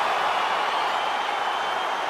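A man yells in triumph.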